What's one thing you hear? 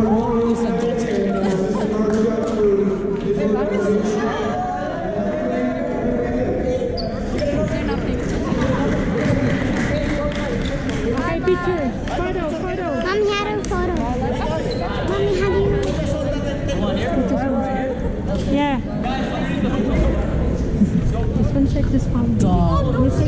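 Sneakers squeak on the hard court floor.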